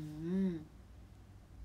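A young woman says a short word up close, in a rising and falling tone.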